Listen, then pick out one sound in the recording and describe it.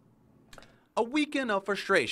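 A woman talks on a phone.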